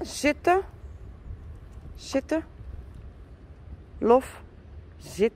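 A dog whines in short, high-pitched yelps, again and again.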